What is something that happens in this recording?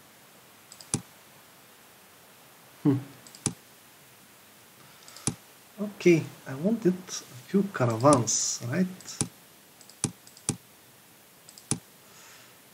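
Short interface clicks sound as game menus open and close.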